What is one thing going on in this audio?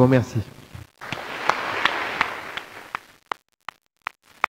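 An audience applauds in a large hall.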